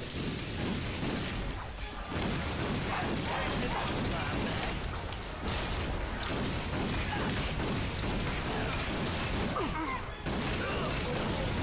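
Explosions boom and debris clatters.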